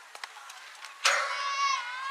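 A bat cracks sharply against a softball.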